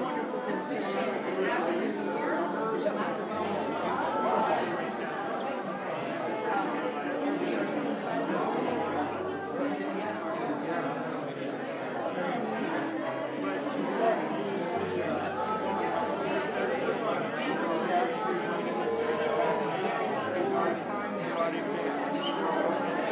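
A crowd of adults chatters all around in a room.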